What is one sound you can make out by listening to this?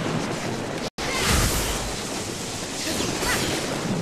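A waterfall rushes and splashes nearby.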